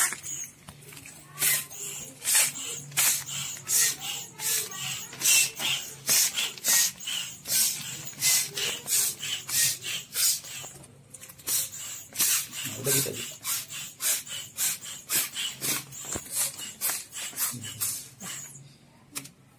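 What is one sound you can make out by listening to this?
A hand pump pushes air into a foil balloon in rhythmic puffs.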